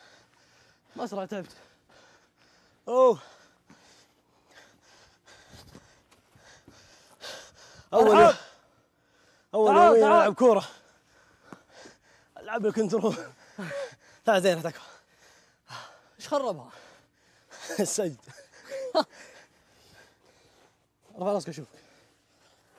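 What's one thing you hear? A young man shouts and exclaims with animation.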